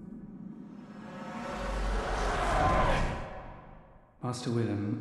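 A deep whooshing rumble swells up and fades away.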